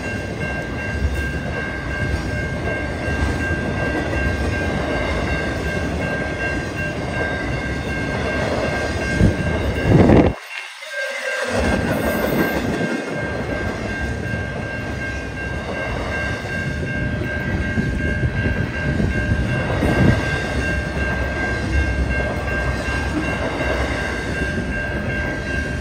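A railroad crossing bell rings.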